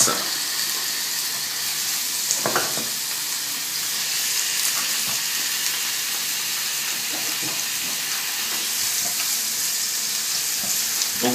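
Food sizzles steadily in hot oil in a frying pan.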